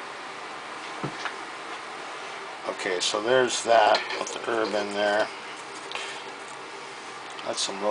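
A glass piece clinks and scrapes as it is fitted onto a device.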